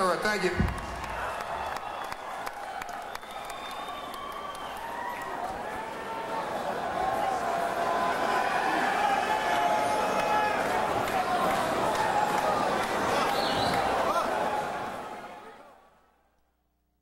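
A large concert crowd cheers and whistles in a big echoing hall.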